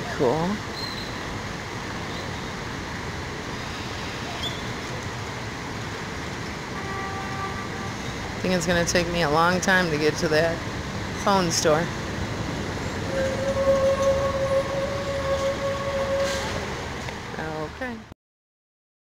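Water splashes steadily from a fountain outdoors.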